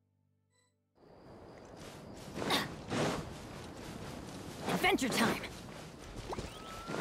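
Footsteps run quickly across soft ground.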